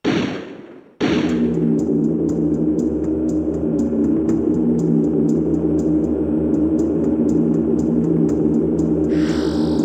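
Steady game background music plays with a low drone.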